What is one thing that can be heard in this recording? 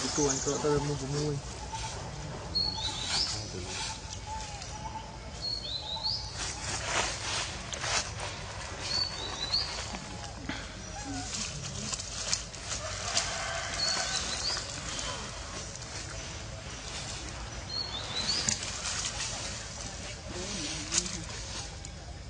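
Dry leaves rustle as a small monkey forages on the ground.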